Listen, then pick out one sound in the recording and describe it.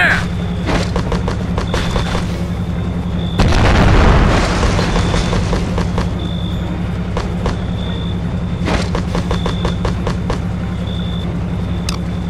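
Short clicks sound as game menu items are switched.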